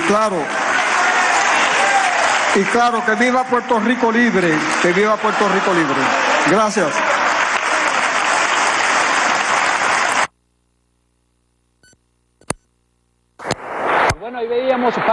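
A large crowd applauds loudly in a big hall.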